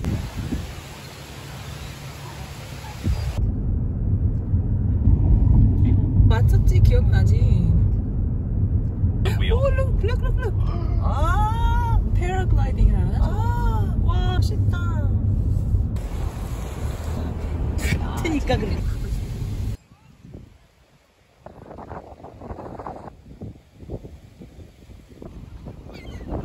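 Wind blows outdoors by the sea.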